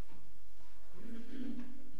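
A violin plays a few notes in an echoing room.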